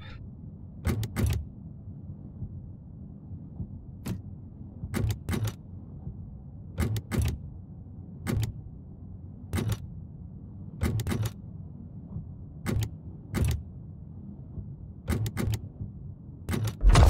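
Puzzle tiles slide into place with short clicks.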